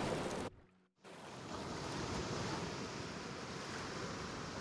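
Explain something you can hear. Water laps gently against rocks.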